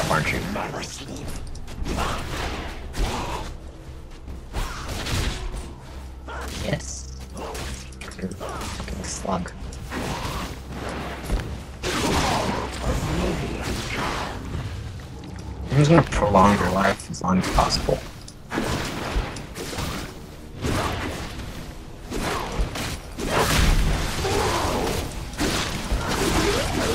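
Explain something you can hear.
Game spell effects and attacks crackle and whoosh in quick bursts.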